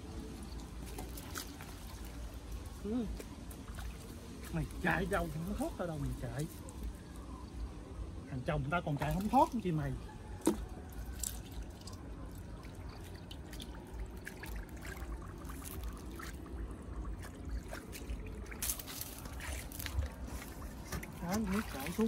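Hands splash and squelch in shallow muddy water.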